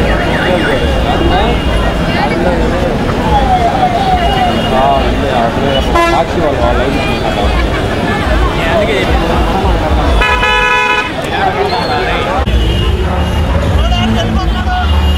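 A large crowd of men and women chatters and shouts outdoors.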